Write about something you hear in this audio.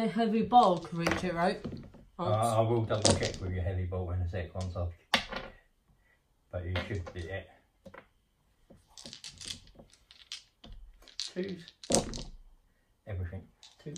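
Dice clatter onto a padded tray.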